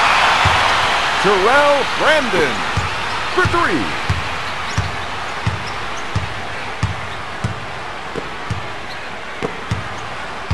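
A basketball is dribbled on a hardwood court.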